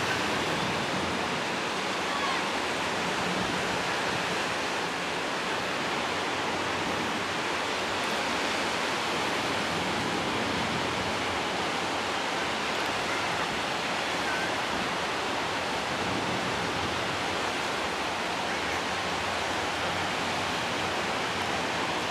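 Ocean waves break and wash ashore in a steady distant roar.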